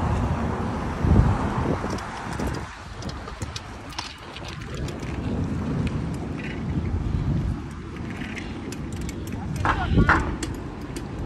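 Bicycle tyres roll over pavement.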